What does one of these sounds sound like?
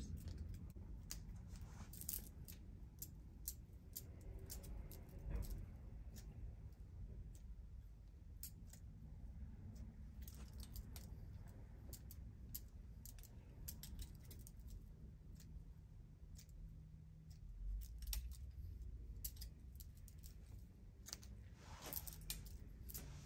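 A comb rakes through hair.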